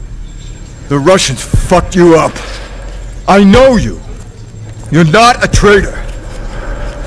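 A man speaks urgently in a low, pleading voice, close by.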